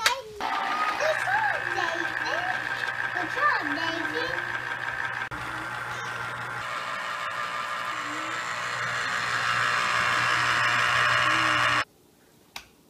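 An electric juicer whirs steadily.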